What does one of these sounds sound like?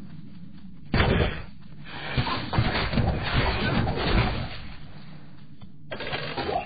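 Blows and magic blasts crash loudly during a fierce fight.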